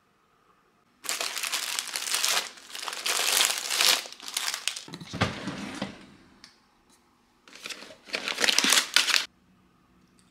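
Plastic bags rustle and crinkle as a hand rummages through a drawer.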